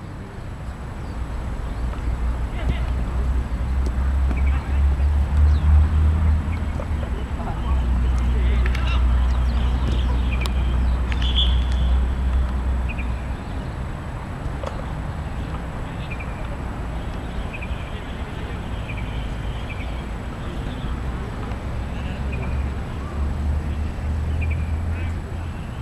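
Young men shout to each other across an open field.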